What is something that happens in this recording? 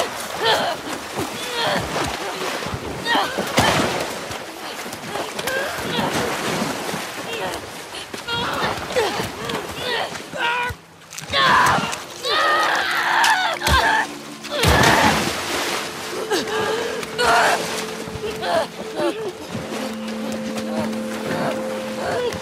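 Water splashes and churns as two people struggle.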